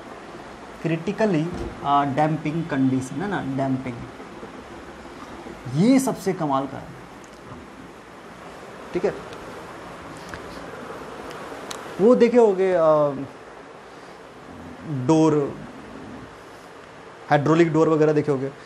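A young man speaks calmly and clearly nearby, in pauses.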